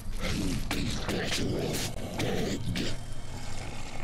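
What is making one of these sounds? A man snarls threateningly in a deep, rough voice.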